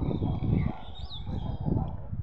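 A bird gives a short chirp.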